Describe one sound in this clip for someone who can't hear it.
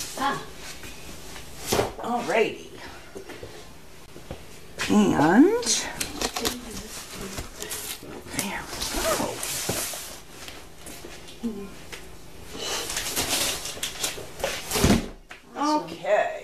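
A cardboard box is set down on a hard floor with a soft thud.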